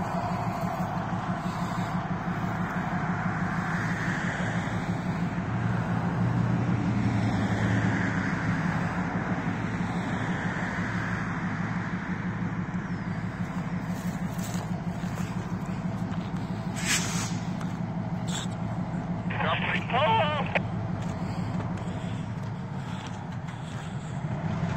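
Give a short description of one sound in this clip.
A freight train rumbles slowly past close by.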